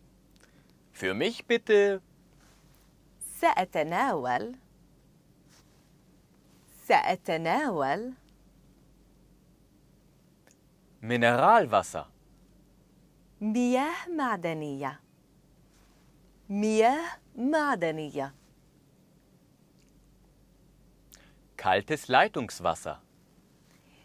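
A man speaks clearly and slowly into a microphone, pronouncing short phrases.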